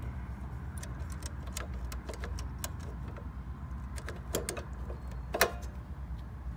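A screwdriver clicks and taps against metal screws.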